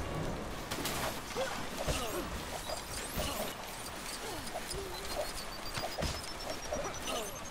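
Ice blasts hiss and crackle in a video game.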